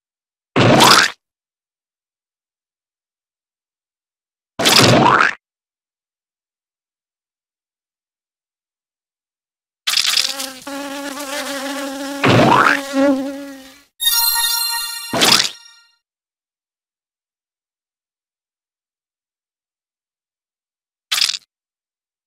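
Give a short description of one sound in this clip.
Bugs are squashed with short splatting sounds, now and then.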